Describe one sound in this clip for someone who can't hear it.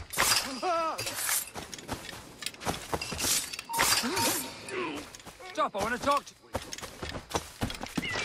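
Footsteps pad quickly over soft ground.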